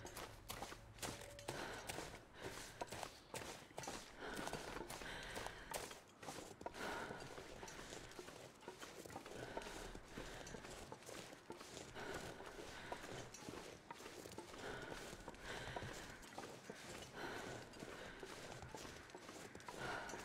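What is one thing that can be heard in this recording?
Footsteps crunch steadily through deep snow.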